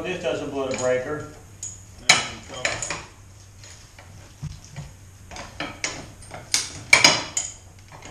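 Metal parts clink and knock.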